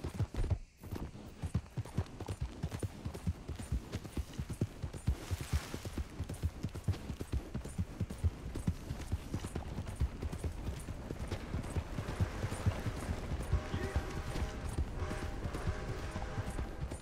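Horse hooves thud rapidly on a dirt road.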